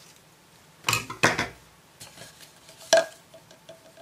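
A small plastic bottle knocks lightly on a table.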